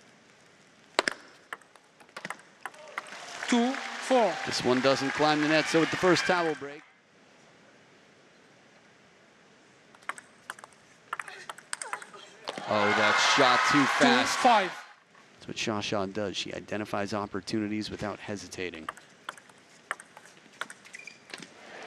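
A table tennis ball clicks back and forth off paddles and the table in a large hall.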